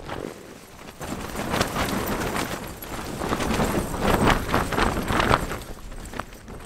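Tent fabric rustles and flaps loudly.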